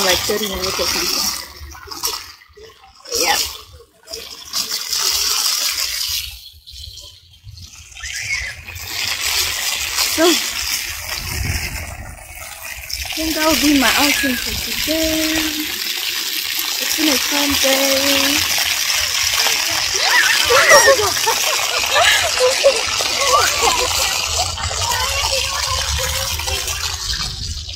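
A fountain splashes and sprays water.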